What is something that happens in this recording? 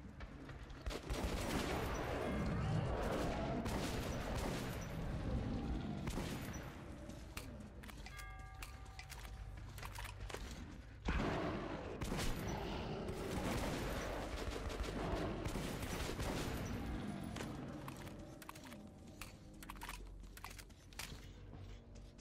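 Gunshots fire in rapid bursts, echoing in a tunnel.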